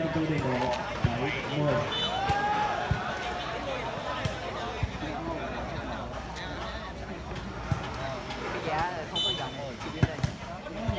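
A ball is struck with sharp thumps.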